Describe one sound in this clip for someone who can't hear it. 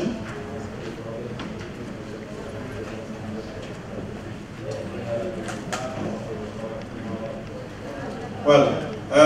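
A woman and a man talk quietly to each other off microphone.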